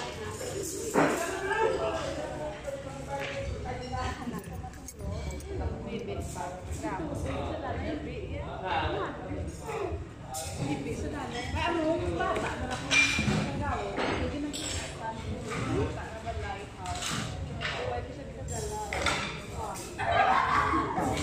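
Adults chatter quietly in the background.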